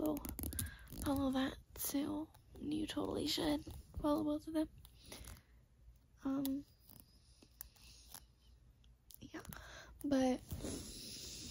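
A young girl talks animatedly and close up.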